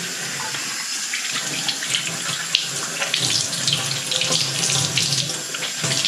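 A cloth rubs and squeaks against a metal tap.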